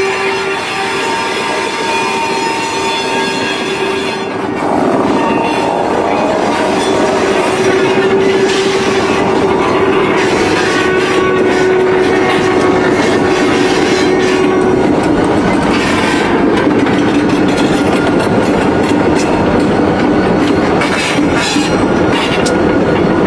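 Diesel locomotives rumble and throb loudly as they pass close by.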